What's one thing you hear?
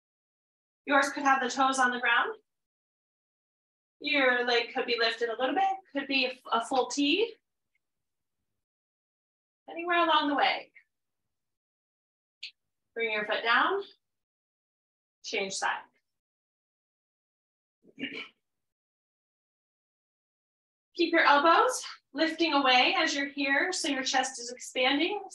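A woman speaks calmly into a close microphone, pausing often.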